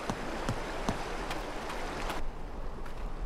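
Water rushes over rocks.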